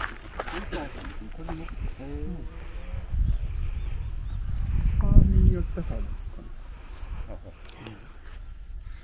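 Men talk casually outdoors, close by.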